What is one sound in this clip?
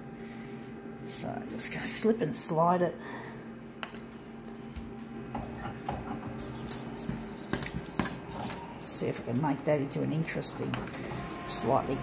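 A copier hums steadily.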